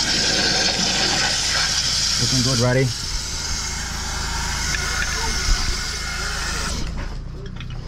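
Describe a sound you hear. A pressure washer sprays water with a loud, steady hiss.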